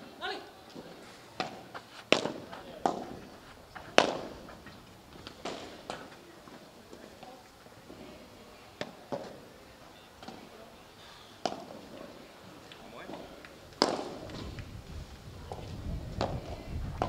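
Padel rackets hit a ball back and forth.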